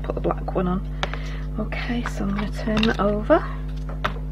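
Paper rustles as a sheet is lifted and set down.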